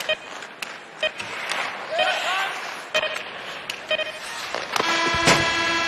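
Sticks slap a puck on the ice with sharp clacks.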